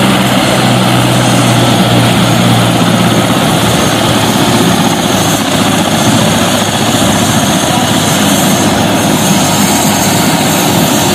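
Helicopter rotor blades thump rapidly overhead.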